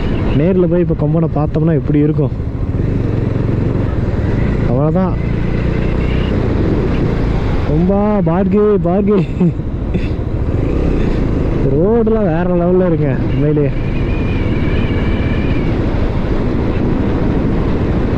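A motorcycle engine hums and revs up and down while riding.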